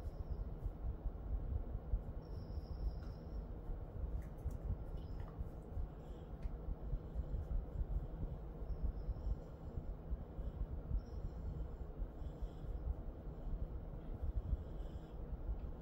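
A hand softly strokes a dog's fur.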